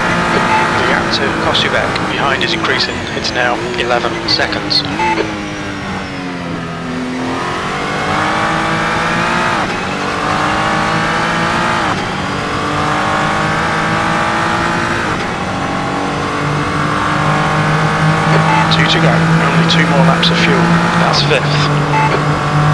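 Tyres squeal through tight corners.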